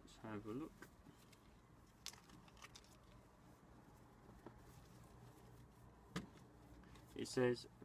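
Fabric rustles as a shirt is unfolded.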